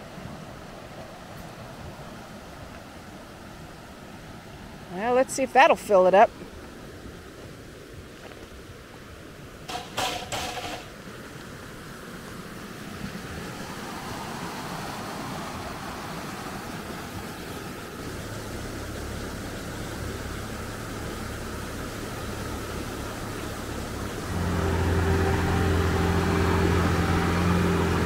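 Water rushes and splashes over rocks in a stream.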